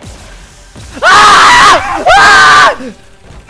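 A young man screams loudly into a microphone.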